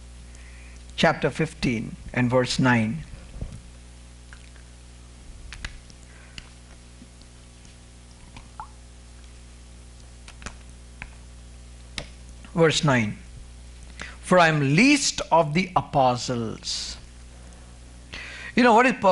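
A man preaches into a microphone with emphasis.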